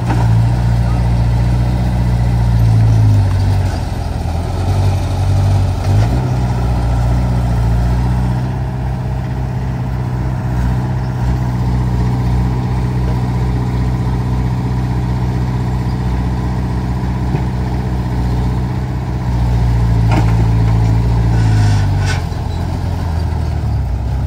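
An excavator bucket scrapes and drops wet soil.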